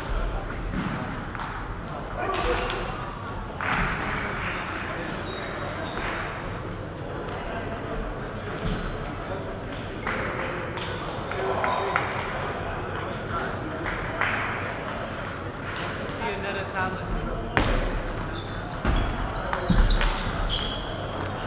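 A table tennis ball clicks back and forth between paddles and the table.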